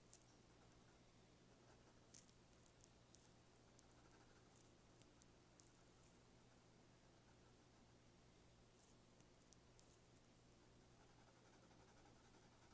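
A pencil scratches and scrapes softly across paper.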